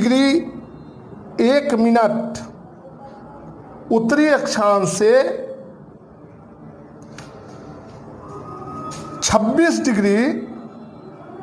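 A man speaks in bursts, explaining calmly and clearly.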